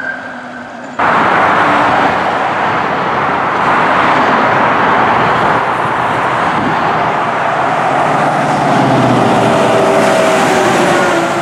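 A fire engine's motor roars as it passes close by.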